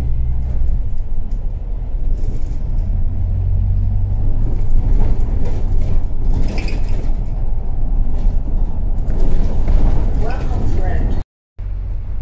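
Cars and a van drive past on the road.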